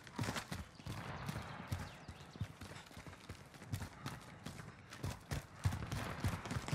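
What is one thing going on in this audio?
Footsteps thud on pavement.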